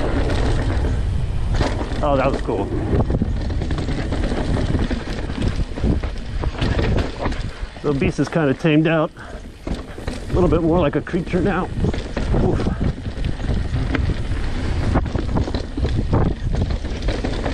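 A bicycle chain and frame rattle over bumps.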